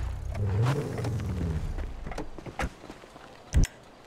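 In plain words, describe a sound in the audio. A car door opens.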